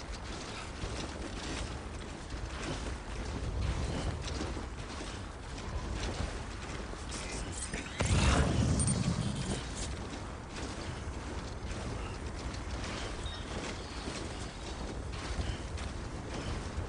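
Boots crunch through deep snow with steady footsteps.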